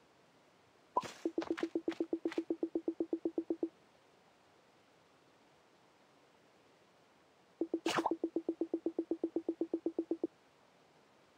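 A game plays a rapid, even run of short electronic blips.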